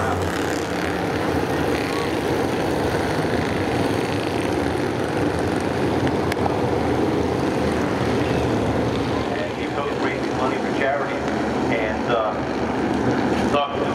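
Racing car engines roar loudly around a track.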